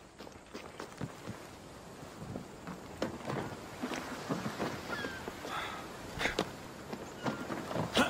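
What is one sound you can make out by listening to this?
Footsteps thud quickly across wooden boards.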